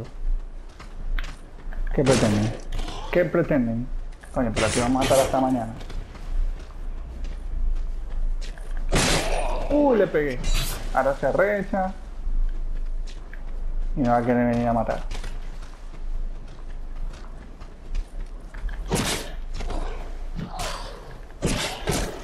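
A sword swings and strikes in a fight.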